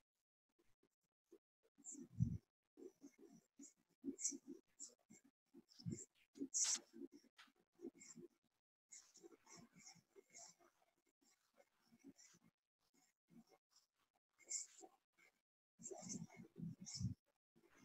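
A marker squeaks across paper.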